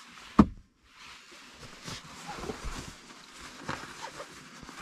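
A fabric bag rustles as hands handle it.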